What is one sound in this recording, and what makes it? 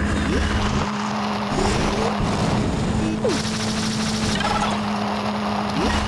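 A small kart engine hums steadily as it races.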